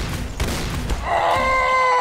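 An explosion booms.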